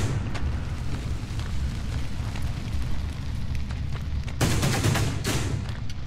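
Fire crackles.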